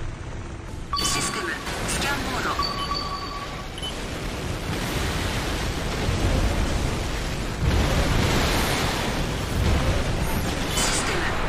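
A robot's booster thrusters roar in a video game.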